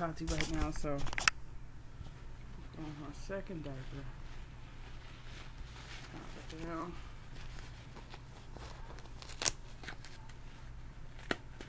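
A diaper rustles and crinkles as it is handled.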